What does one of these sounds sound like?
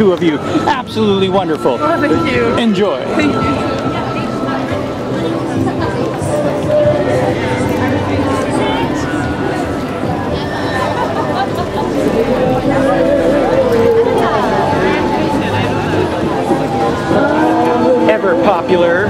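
A crowd chatters steadily outdoors.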